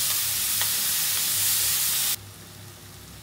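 Food sizzles loudly in a hot pan.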